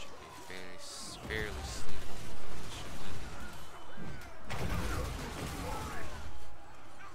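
Explosions boom with loud bursts.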